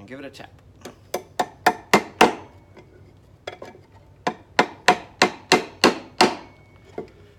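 A hammer taps sharply on metal pins in quick runs.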